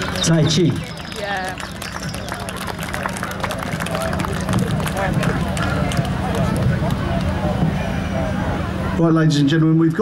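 A crowd chatters and murmurs outdoors.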